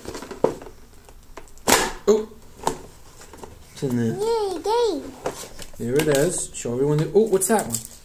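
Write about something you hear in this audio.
A cardboard box rustles and crinkles as it is opened.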